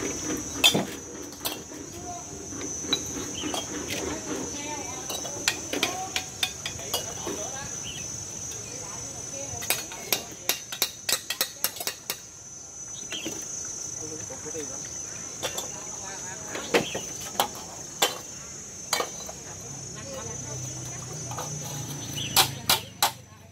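A trowel taps and scrapes against bricks and mortar.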